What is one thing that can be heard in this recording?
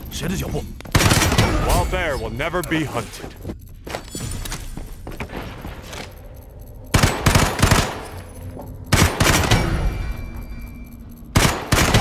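Gunshots fire in loud, rapid bursts.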